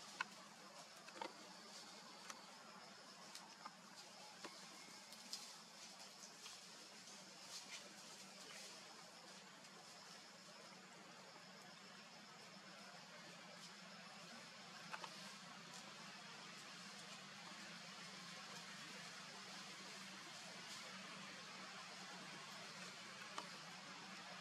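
Dry leaves crackle now and then.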